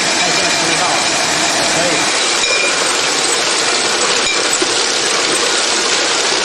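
Glass bottles clink against each other on a conveyor.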